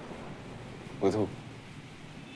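A young man speaks briefly nearby.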